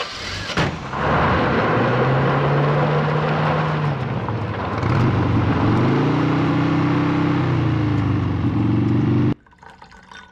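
A motorcycle with a sidecar pulls away, its engine revving.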